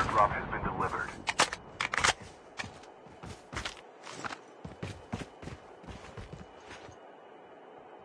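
Footsteps thud quickly on the ground in a video game.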